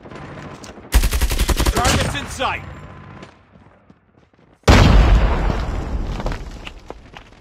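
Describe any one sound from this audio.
Rapid gunfire crackles in loud bursts.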